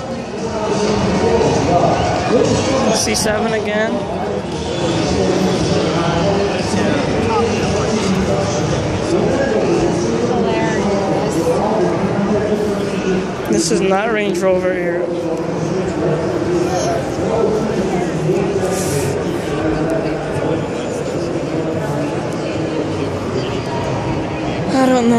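A crowd of men and women chatters steadily in a large echoing hall.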